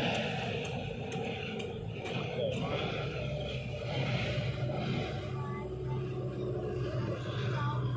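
A hoe scrapes and chops into dry soil.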